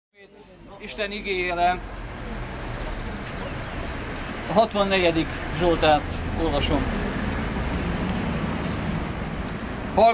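A young man reads aloud outdoors, speaking clearly and earnestly.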